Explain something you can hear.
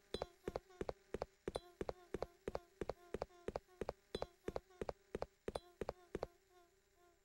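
Footsteps tap steadily on a stone path.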